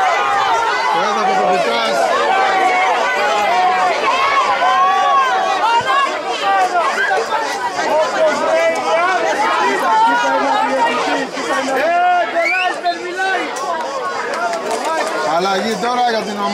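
Several men shout and argue at a distance outdoors.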